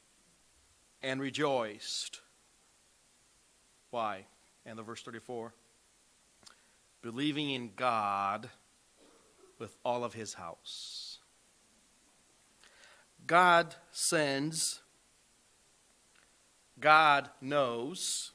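A man speaks calmly through a microphone in a quiet, echoing hall, pausing between phrases.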